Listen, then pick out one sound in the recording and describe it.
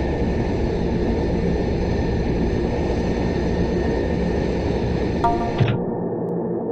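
Propeller engines idle with a steady low drone.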